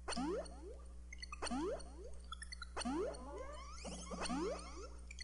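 Short rising electronic chirps repeat in quick bursts, about once every second and a half.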